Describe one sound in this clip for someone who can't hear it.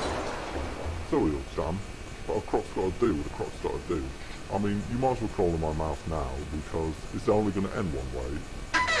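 A man speaks in a gruff, drawling voice with animation.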